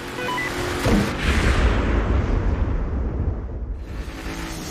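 Thunder rumbles low and deep.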